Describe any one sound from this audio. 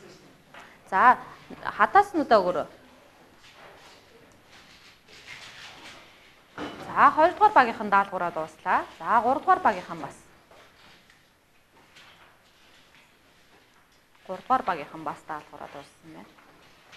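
A woman speaks loudly with animation.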